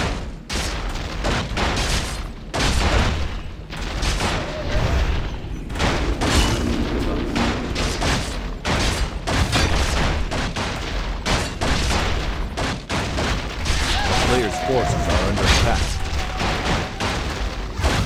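Buildings crumble and explode in a game battle.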